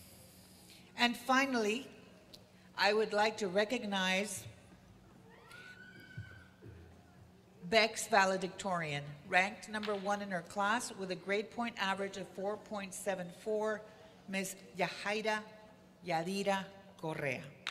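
A woman speaks calmly into a microphone over a loudspeaker in a large echoing hall.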